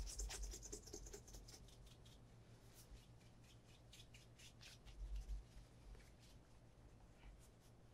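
A cloth rubs briskly against a leather shoe.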